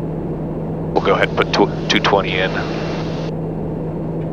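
A man speaks briefly over a headset intercom.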